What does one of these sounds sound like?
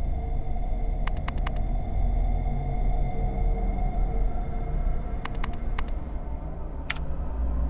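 Short electronic clicks sound in quick bursts as a menu selection moves.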